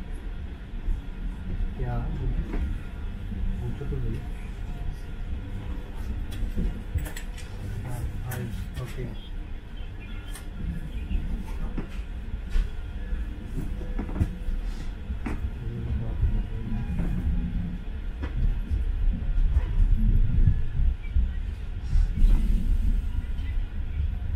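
A commuter train rumbles as it rolls out of a station, heard from inside the carriage.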